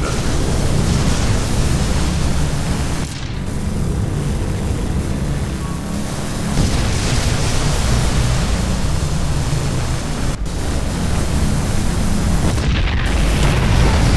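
Units fire and explosions boom in a game battle.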